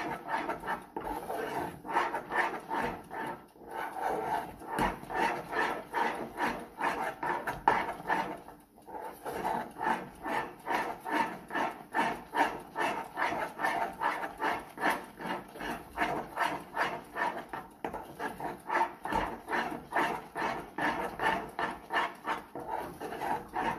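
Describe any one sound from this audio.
A spoon scrapes and stirs thick batter in a metal pan.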